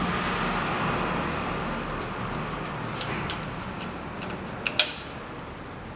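A wrench clanks against metal.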